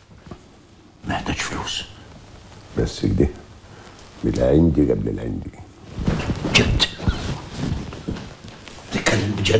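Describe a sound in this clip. Another man speaks with animation.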